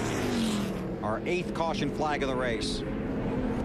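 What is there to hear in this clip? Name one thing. Tyres squeal as a race car spins.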